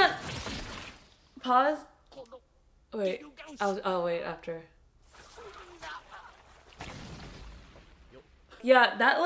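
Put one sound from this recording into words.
A young woman laughs and speaks cheerfully close to a microphone.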